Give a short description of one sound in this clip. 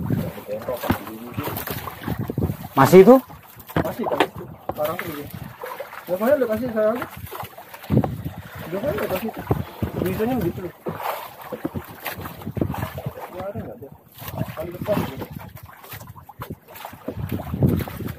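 Water laps against a small boat's hull.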